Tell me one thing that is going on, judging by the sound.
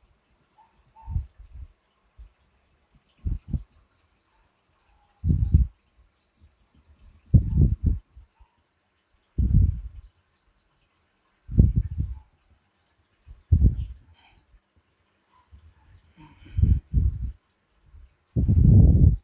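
A paintbrush taps and dabs against a board in soft, regular thumps.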